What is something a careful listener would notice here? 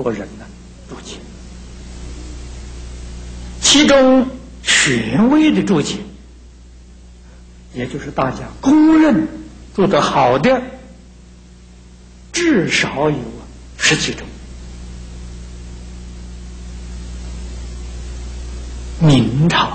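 An elderly man speaks calmly and slowly through a microphone, with pauses between phrases.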